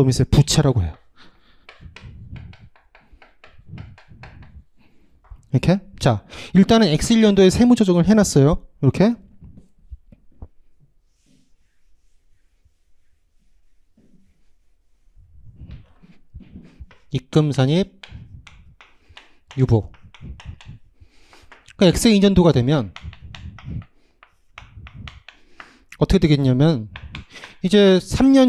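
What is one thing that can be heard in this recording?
A young man lectures with animation through a microphone.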